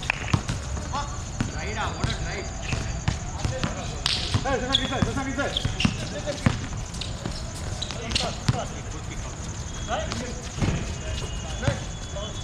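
Young men shout and call out to each other during the game.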